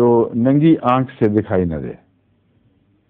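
An elderly man speaks calmly and clearly, close by.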